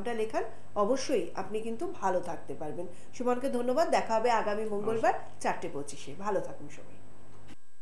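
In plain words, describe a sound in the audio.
A woman speaks warmly into a studio microphone.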